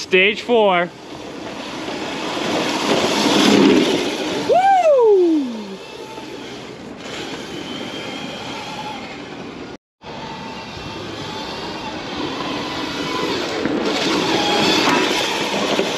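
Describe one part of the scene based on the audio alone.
Small plastic wheels roll and rumble on asphalt.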